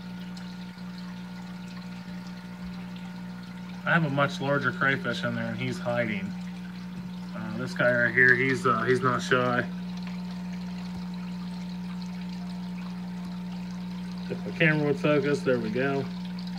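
Air bubbles stream and gurgle softly in water.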